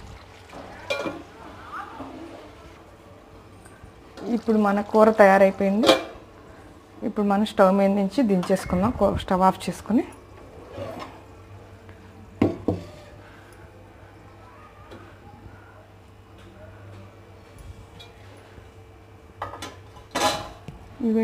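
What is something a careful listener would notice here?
A metal lid clanks against a metal pot.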